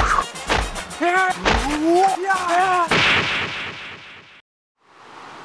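A second young man speaks with animation close by.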